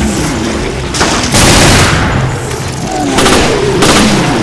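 A handgun fires several sharp shots.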